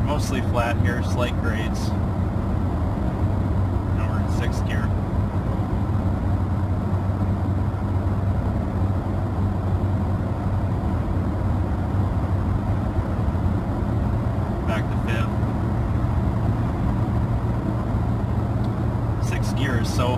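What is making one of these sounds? A vehicle's engine hums steadily, heard from inside the cabin.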